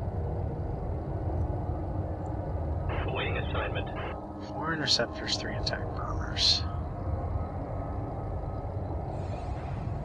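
Spaceship engines rumble steadily.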